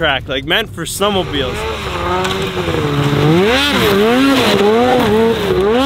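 A snowmobile engine whines and revs.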